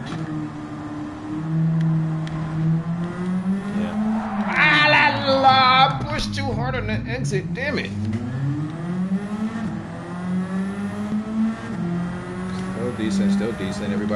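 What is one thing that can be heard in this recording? A racing car engine roars, revving up and down as gears shift.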